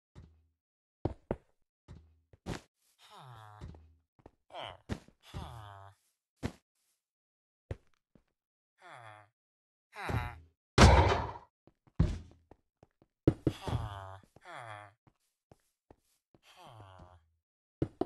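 Blocks are placed and broken with short, soft knocks.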